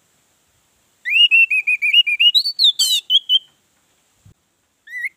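An orange-headed thrush sings a run of clear, whistled notes.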